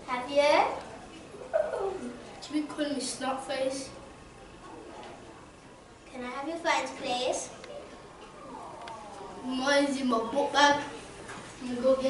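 A young boy speaks nearby.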